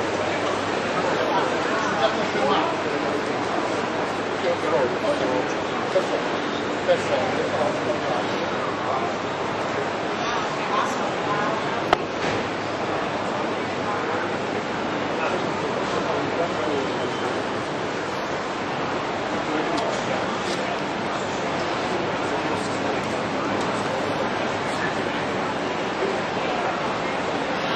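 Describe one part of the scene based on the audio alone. A crowd of people chatters all around in a busy indoor hall.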